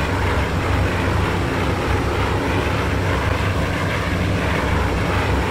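Propeller plane engines drone loudly and steadily.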